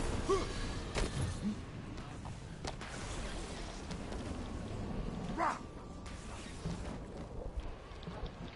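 Soft thuds of landing and footsteps sound from a video game.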